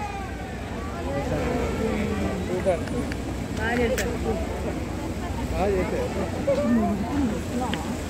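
A crowd of men talk and call out nearby, outdoors.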